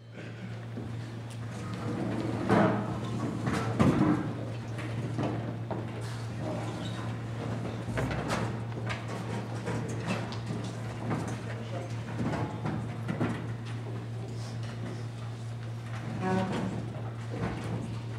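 Young musicians chatter and murmur in a large echoing hall.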